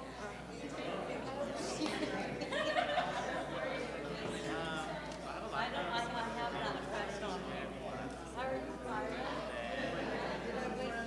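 A crowd of people chatter among themselves.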